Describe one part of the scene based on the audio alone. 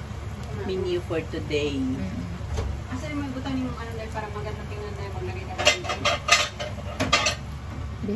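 A spatula scrapes and taps against a pan.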